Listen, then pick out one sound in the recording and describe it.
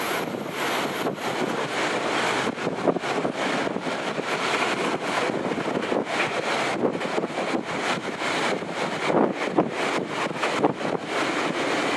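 Wind buffets loudly past an open train window.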